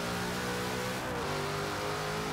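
A car engine's pitch briefly dips as a gear shifts.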